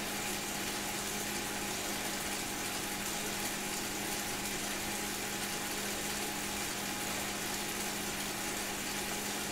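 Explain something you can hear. An indoor bike trainer whirs steadily under pedalling.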